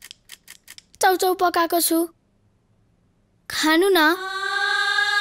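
A boy speaks close by in a gentle, coaxing voice.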